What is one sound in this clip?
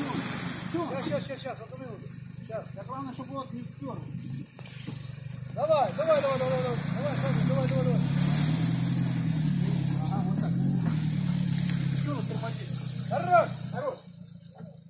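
A man speaks outdoors nearby.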